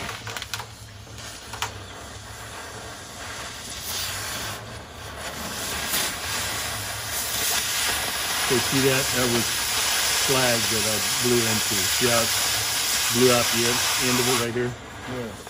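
A cutting torch hisses and roars steadily.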